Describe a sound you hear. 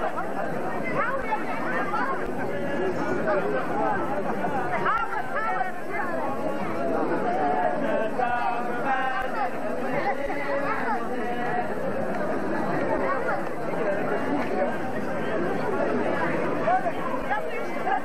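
A crowd of men and women chatters loudly all around, outdoors.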